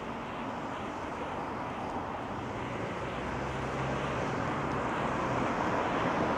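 A car drives slowly past on a nearby street.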